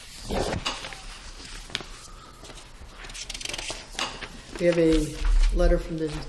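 Paper rustles as a man handles a sheet.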